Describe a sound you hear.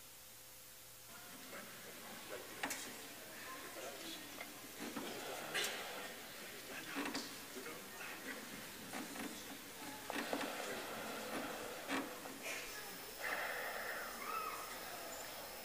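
French horns play softly in a large hall.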